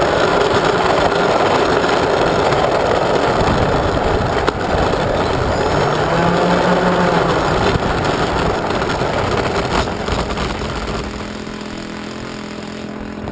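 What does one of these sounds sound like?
Small plastic wheels rumble and rattle over rough pavement.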